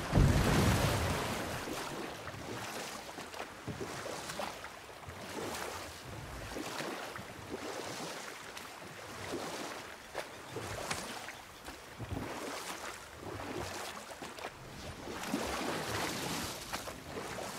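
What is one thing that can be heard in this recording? Oars dip and splash through the water in a steady rhythm.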